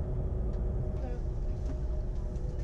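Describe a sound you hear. A man greets passengers up close.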